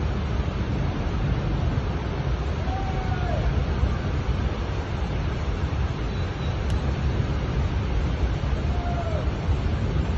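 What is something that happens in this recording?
A muddy floodwater torrent rushes and roars loudly.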